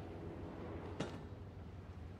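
A caped figure lands with a soft thud.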